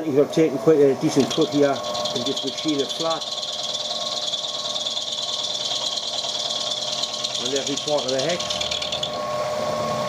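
A milling cutter whines as it cuts into brass.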